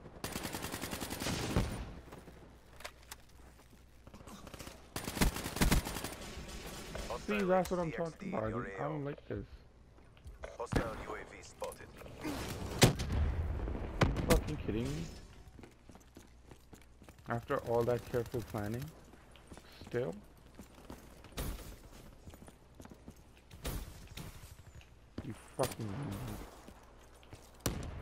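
Rapid gunshots crack in sharp bursts.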